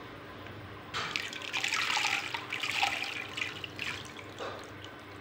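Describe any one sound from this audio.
Salt crystals splash into water.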